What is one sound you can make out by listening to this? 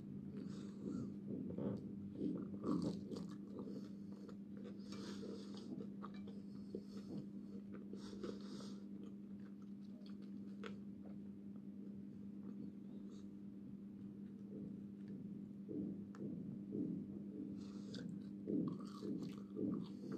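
A woman chews crunchy fries close to a microphone.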